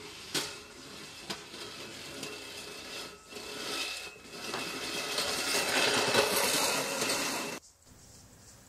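A push mower whirs and clatters across grass.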